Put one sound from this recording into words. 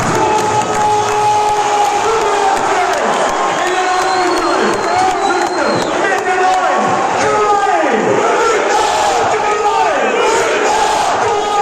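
A large stadium crowd chants and sings loudly in unison, close by.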